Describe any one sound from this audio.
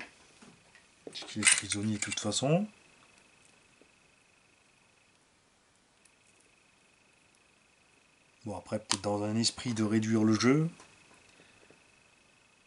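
Small plastic parts click softly as they are handled.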